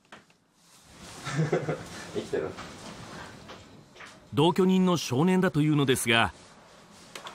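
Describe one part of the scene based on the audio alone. A young man asks a quiet question.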